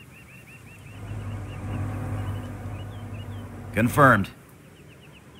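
Tank engines rumble low and steady.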